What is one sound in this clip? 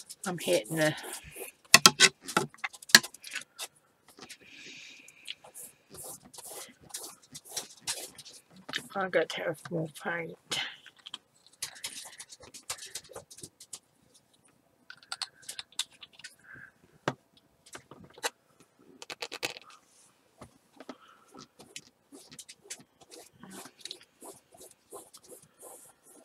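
A paintbrush scratches and swishes across paper.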